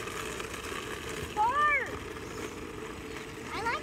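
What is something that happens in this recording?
Plastic wheels rumble and scrape along asphalt.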